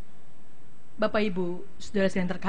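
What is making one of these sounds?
A woman speaks calmly through a microphone.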